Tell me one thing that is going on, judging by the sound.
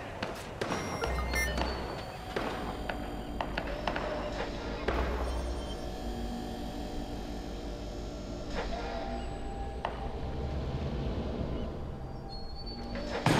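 A crane motor hums and whirs as the crane swings.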